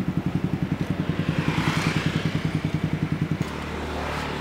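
A motorcycle engine idles close by with a rapid, even throb, then cuts out.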